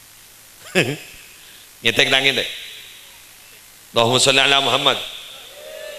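A middle-aged man speaks with animation into a microphone, heard through loudspeakers with an echo.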